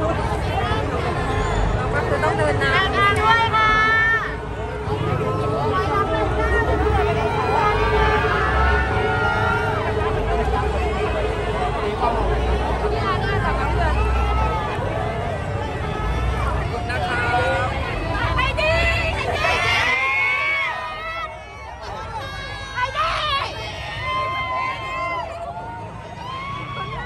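A large outdoor crowd cheers and shouts loudly.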